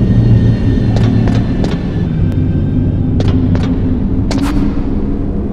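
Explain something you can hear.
Footsteps tap quickly on a hard metal floor.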